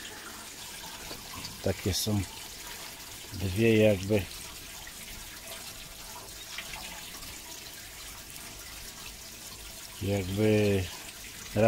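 Water pours from a pipe and splashes into shallow water.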